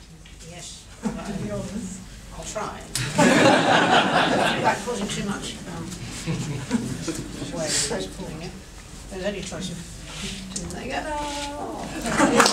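Two women talk quietly nearby.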